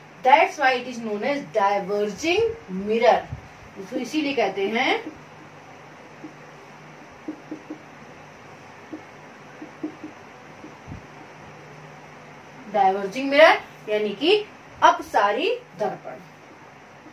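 A young woman speaks clearly and with animation, as if teaching.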